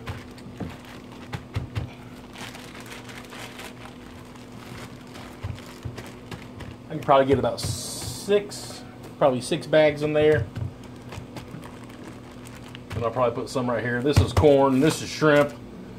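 Plastic bags rustle and crinkle as a man rummages through them.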